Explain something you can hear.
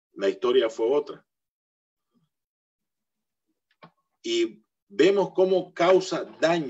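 A middle-aged man speaks with animation over an online call, pausing between phrases.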